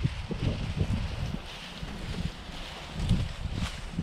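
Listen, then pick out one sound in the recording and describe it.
Leafy branches drag and rustle across the ground.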